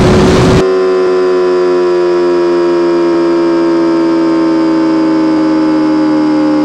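A racing car engine roars at high speed with a steady, slowly falling pitch.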